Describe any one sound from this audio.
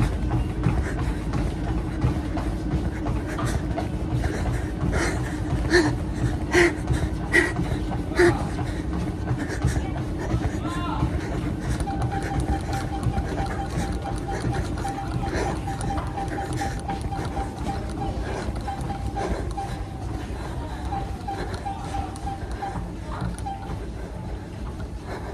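Feet thud rhythmically on an exercise machine.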